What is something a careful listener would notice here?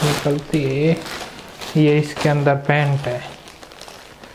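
A young man speaks calmly and close by into a microphone.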